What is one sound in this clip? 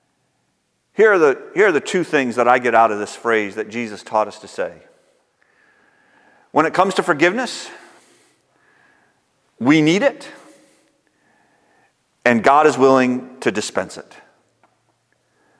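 A middle-aged man speaks calmly and clearly into a microphone, pausing between phrases.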